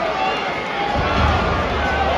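A heavy body thuds onto a wrestling ring mat.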